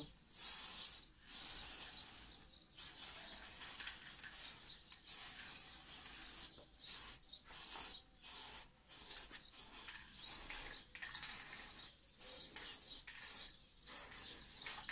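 A spray can hisses in short, repeated bursts, close by.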